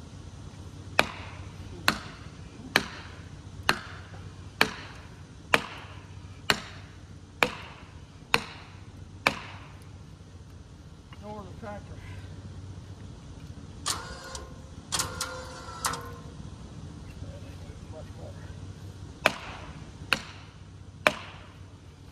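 A sledgehammer strikes a metal wedge with sharp ringing clangs.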